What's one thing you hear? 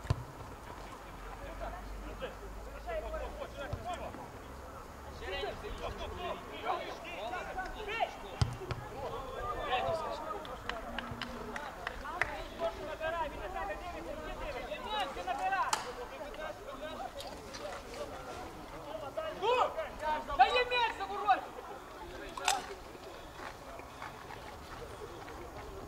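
Men shout across an open field.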